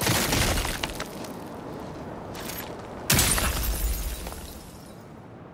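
A rock cracks and shatters, with shards clattering.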